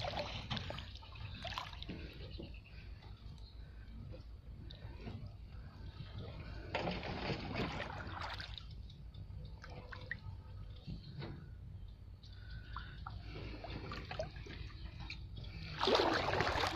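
Water splashes and sloshes as a man wades through shallow water.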